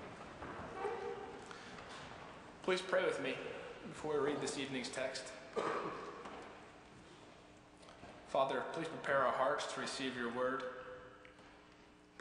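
A young man speaks calmly into a microphone in a large echoing hall.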